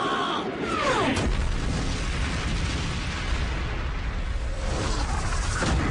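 A large explosion booms and billows.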